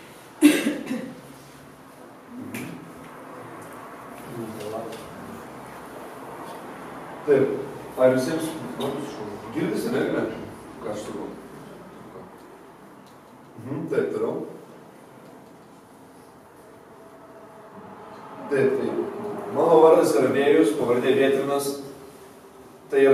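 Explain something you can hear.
A man speaks with animation in a room with some echo.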